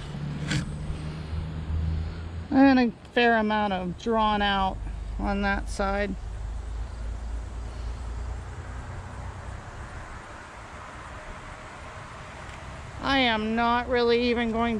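Honeybees buzz steadily all around.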